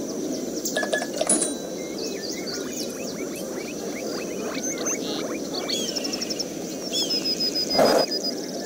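Short electronic chirps and blips sound in quick succession.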